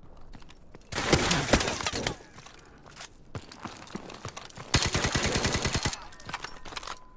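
Rapid gunfire rattles loudly in bursts.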